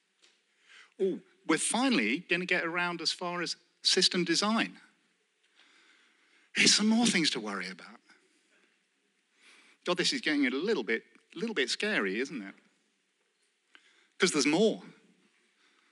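A man speaks calmly into a microphone over loudspeakers in a large hall, with pauses.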